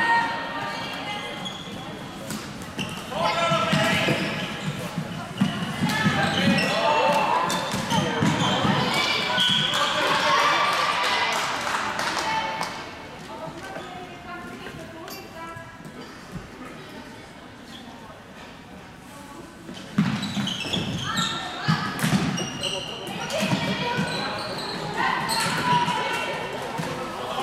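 Players shout and call out across an echoing indoor hall.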